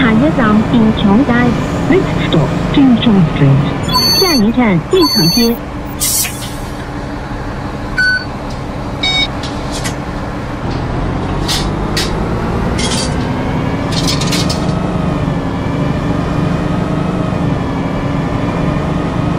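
A bus engine drones steadily and rises in pitch as the bus speeds up.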